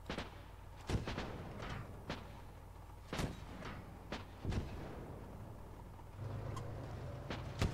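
Gunshots crack in short bursts, echoing outdoors.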